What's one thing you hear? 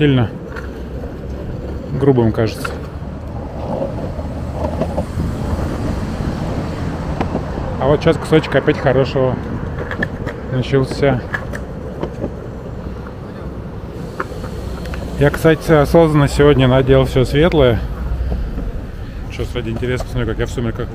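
Skateboard wheels rumble steadily over rough asphalt.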